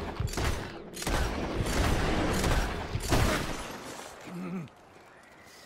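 Gunshots crack loudly and echo.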